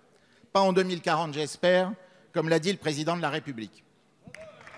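A middle-aged man speaks firmly into a microphone in a large echoing hall.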